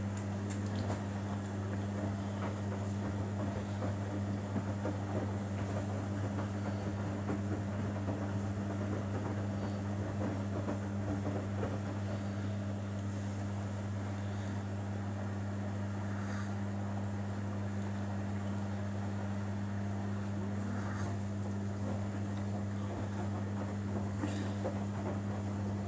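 Wet laundry tumbles and sloshes in a front-loading washing machine drum.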